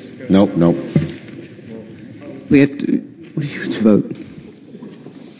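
A man calls out over a loudspeaker in a large echoing hall.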